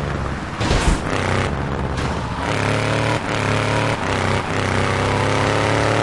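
A car engine roars steadily as the car drives.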